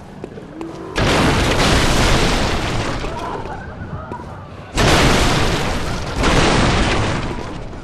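Wooden crates and boards smash and splinter with loud crashes.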